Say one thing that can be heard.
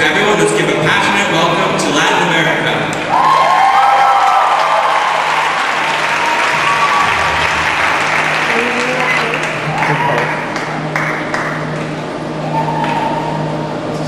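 A large audience cheers and screams loudly in an echoing hall.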